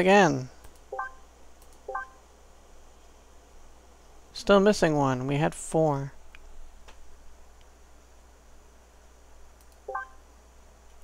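Short soft menu blips chime as tabs change.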